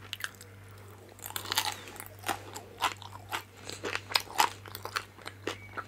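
A woman chews food wetly and crunchily close to a microphone.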